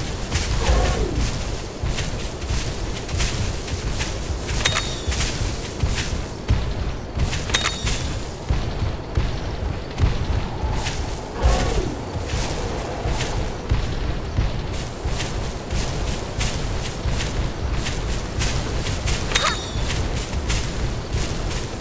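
Heavy footsteps of a large creature thud rhythmically on the ground.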